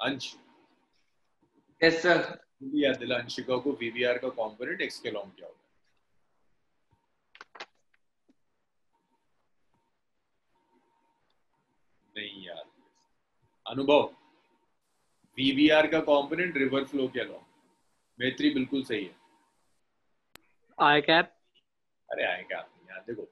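A young man speaks calmly into a close microphone, with pauses.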